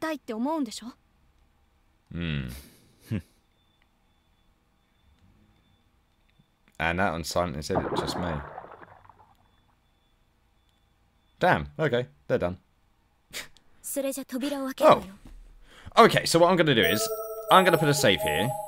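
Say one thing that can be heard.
A young man talks with animation, heard close through a microphone.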